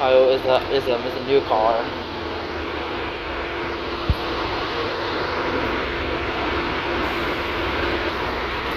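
A city bus engine hums steadily as the bus drives along.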